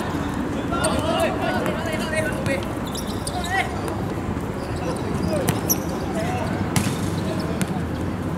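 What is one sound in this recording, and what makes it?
A football is kicked on an outdoor hard court.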